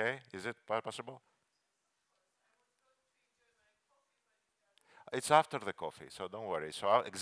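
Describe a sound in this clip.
A middle-aged man speaks with animation through a headset microphone.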